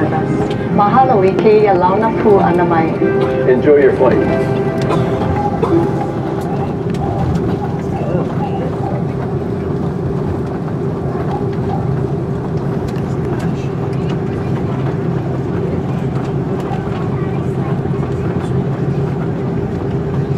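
Tyres rumble over the runway.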